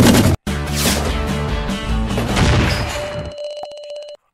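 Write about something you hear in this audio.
Explosions boom and crackle.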